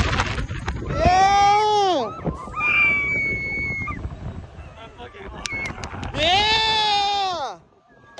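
Young women scream loudly in long rising and falling shrieks.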